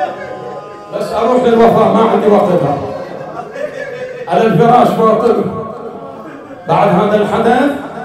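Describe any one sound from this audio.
A man speaks loudly with animation into a microphone, echoing in a hall.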